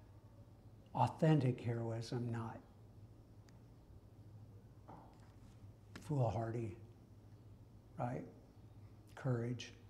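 A middle-aged man speaks calmly nearby, pausing between phrases.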